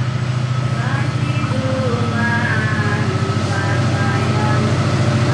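A horn sounds from the locomotive.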